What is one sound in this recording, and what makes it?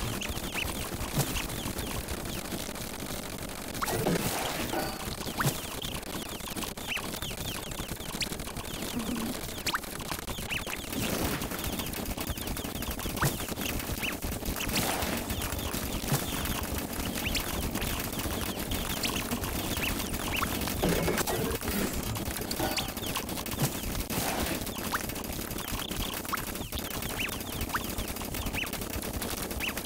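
Game sound effects of rapid popping, zapping and explosions play constantly.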